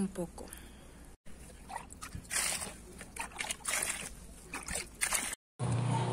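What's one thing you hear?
Water splashes as a hand stirs it.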